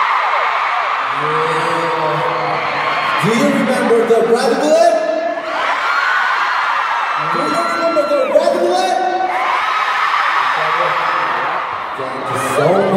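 A young man speaks through a microphone over loudspeakers, echoing through the arena.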